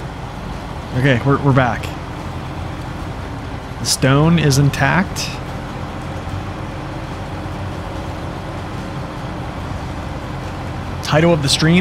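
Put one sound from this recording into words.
A heavy truck engine rumbles steadily as the truck drives along a dirt road.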